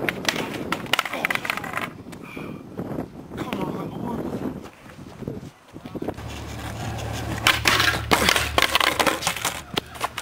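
A skateboard clatters and slaps onto asphalt.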